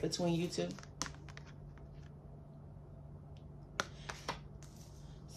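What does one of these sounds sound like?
A card rustles and taps in a hand.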